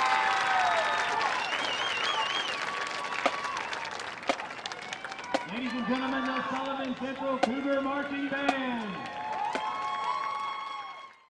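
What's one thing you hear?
A marching band plays brass and drums outdoors.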